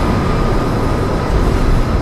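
A tank engine rumbles nearby.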